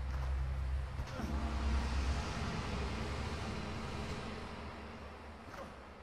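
A heavy stone door grinds open.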